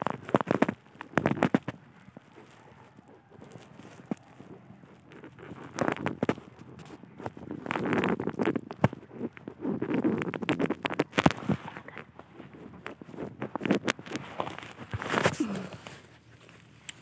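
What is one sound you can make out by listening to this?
Leaves rustle and crackle as plants are pushed aside.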